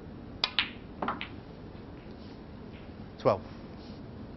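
Snooker balls knock together and clack.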